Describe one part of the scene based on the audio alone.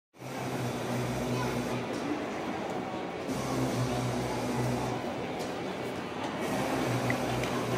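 Pop music plays loudly over loudspeakers in a large echoing hall.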